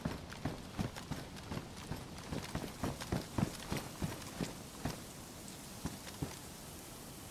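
Footsteps thud on wooden boards and steps.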